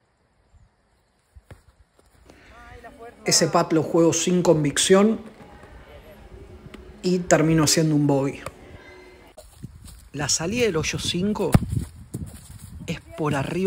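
A foot kicks a ball with a dull thud.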